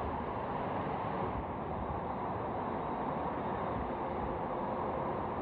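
An electric bus approaches.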